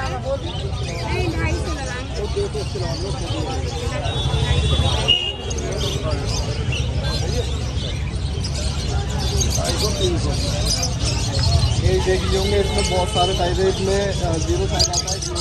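Small birds chirp and tweet nearby.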